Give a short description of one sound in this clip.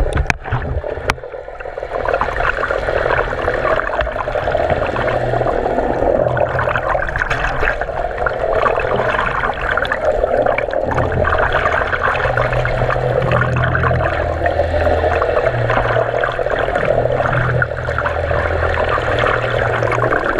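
Water churns and bubbles, heard muffled from underwater.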